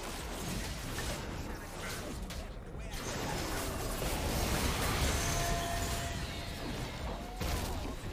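Spell blasts and impacts crackle and boom from a video game.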